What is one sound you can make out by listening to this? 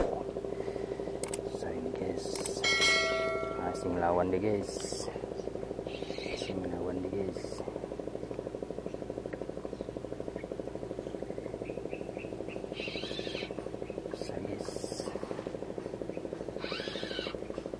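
A spinning reel clicks as line is wound in.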